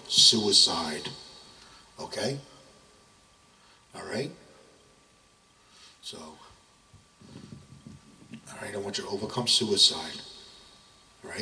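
A middle-aged man speaks into a handheld microphone in bursts, with pauses between phrases.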